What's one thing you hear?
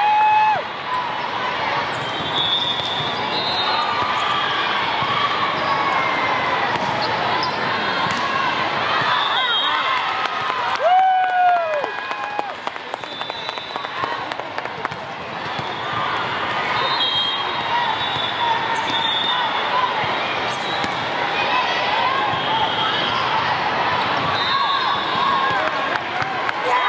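Many voices chatter and call out throughout a large echoing hall.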